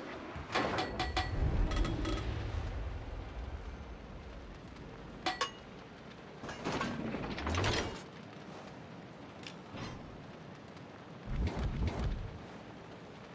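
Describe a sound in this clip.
Heavy shells explode against a warship in deep booms.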